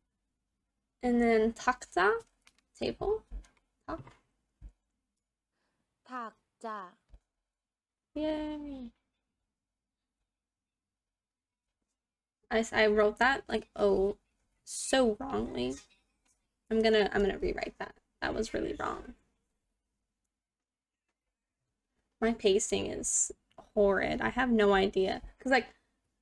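A young woman speaks calmly and clearly into a close microphone, pausing between phrases.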